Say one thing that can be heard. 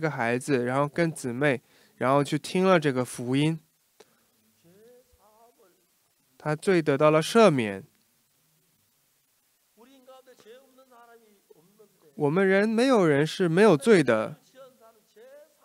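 An elderly man speaks slowly and with emphasis into a microphone, with pauses between phrases.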